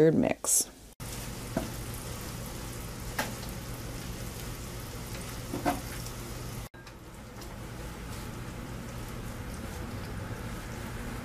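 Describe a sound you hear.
Bacon sizzles and crackles steadily.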